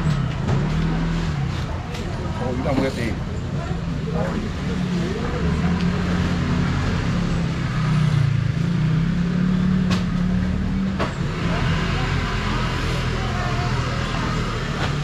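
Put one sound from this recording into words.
People talk in low voices in the background outdoors.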